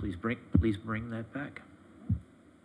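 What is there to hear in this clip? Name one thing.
A man speaks briefly over a microphone in a quiet room.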